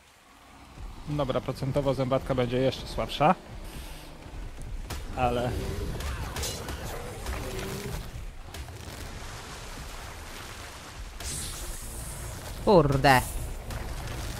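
A large creature roars and growls loudly.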